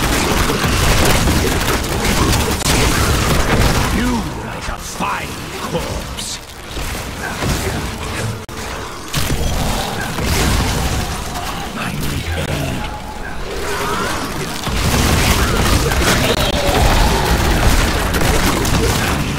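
Spells crackle and explode in a fast fantasy battle.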